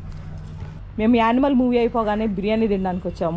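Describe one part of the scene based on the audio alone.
A young woman speaks clearly and brightly, close by.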